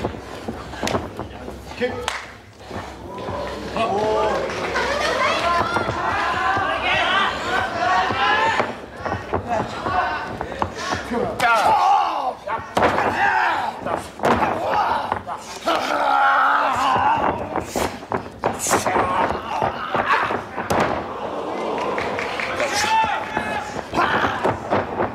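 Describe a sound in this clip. An indoor arena crowd cheers and murmurs.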